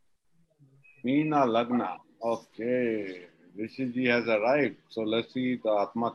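An older man speaks with animation over an online call.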